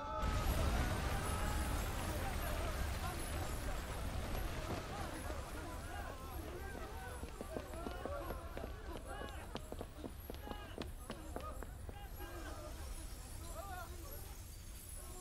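A crowd of people shout and scream in alarm.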